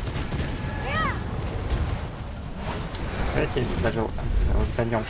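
Deep rumbling battle effects boom steadily.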